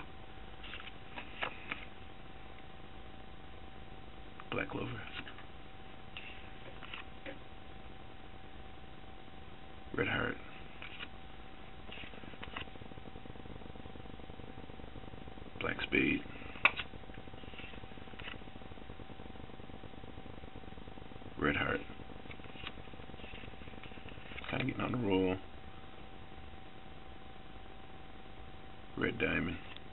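Playing cards rustle and flick in a hand.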